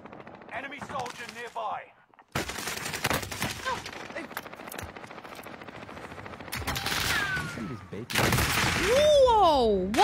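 Gunfire cracks in bursts.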